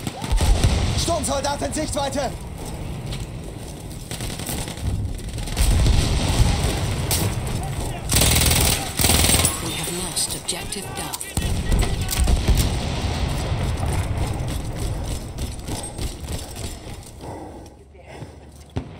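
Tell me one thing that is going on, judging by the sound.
Gunfire booms and rattles in loud bursts.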